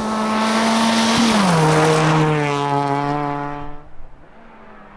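A rally car engine roars at high revs, shifts gear and fades away.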